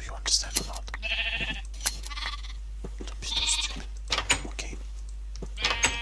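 Sheep bleat loudly, one after another.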